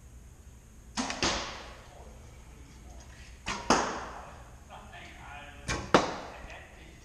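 Arrows thud into a target nearby.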